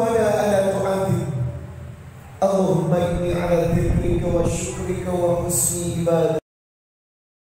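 A man preaches with animation through a loudspeaker in a large echoing hall.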